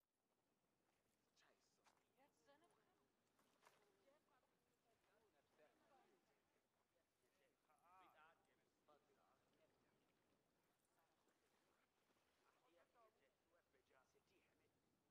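A man talks quietly in the distance.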